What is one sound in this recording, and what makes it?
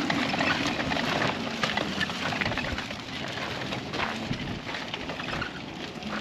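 A mobility scooter's electric motor hums as it rolls over gravel.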